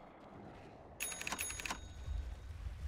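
Magic spells chime and crackle in a fight.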